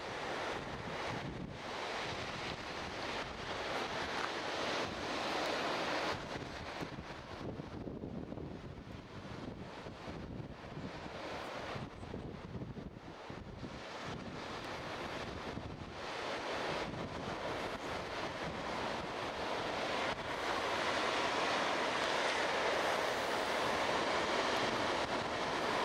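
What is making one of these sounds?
Waves break and wash onto a beach, heard outdoors.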